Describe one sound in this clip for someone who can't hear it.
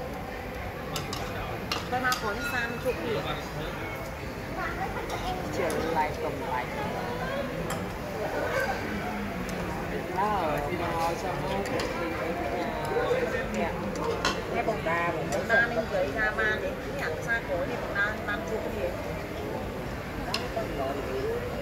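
Chopsticks clink against dishes.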